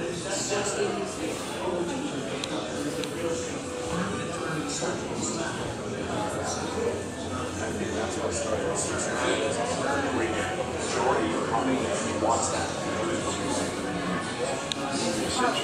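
A crowd of adult men and women chatter and murmur indoors.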